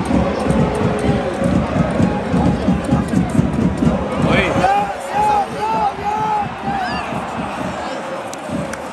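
A large stadium crowd chants and sings loudly all around.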